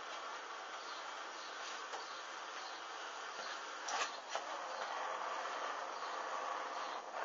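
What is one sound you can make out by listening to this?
A small flame crackles and hisses softly.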